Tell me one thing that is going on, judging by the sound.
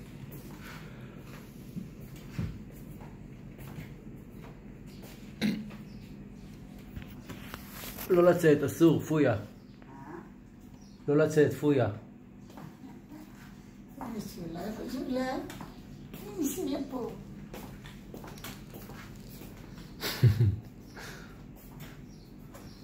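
Slippers shuffle on a tiled floor.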